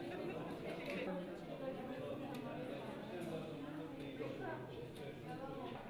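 Several women chatter quietly nearby.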